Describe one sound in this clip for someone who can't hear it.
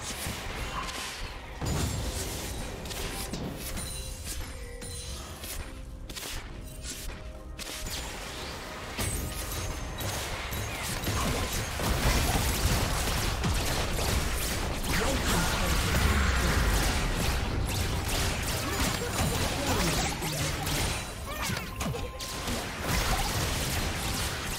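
Game spell effects and attacks crackle and clash during a fight.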